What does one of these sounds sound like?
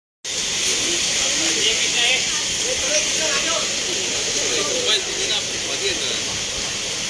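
Several men talk at once outdoors, in a noisy crowd.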